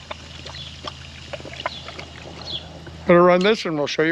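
Water trickles and splashes from a hose.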